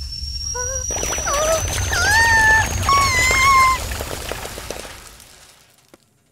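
Popcorn pops rapidly in a pot.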